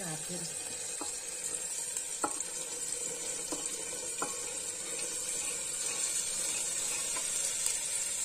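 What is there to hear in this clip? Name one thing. Dried chickpeas rattle as they pour into a metal pot.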